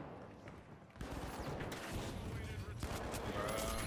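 Rapid gunfire bursts loudly from a game.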